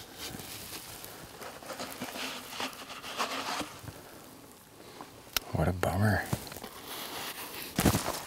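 A man speaks quietly, close by, outdoors.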